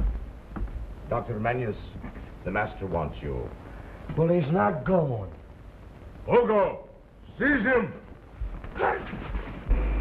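A man speaks with animation.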